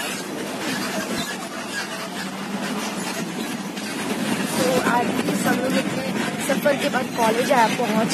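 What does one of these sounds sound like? A train rumbles and rattles along steadily.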